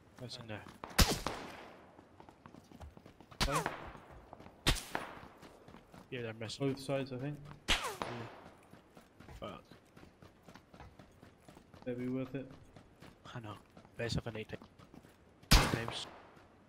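Rifle shots crack loudly and echo, one at a time.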